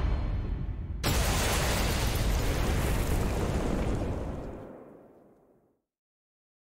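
An explosion roars and slowly dies away.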